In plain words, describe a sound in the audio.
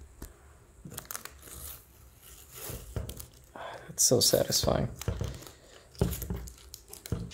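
Plastic film crinkles and rustles as it is peeled off.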